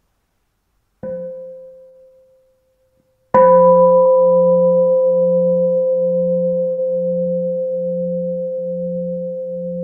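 A bell is struck twice and rings out with a long, slowly fading tone.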